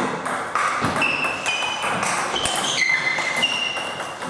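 A ping-pong ball clicks off paddles and a table in a quick rally.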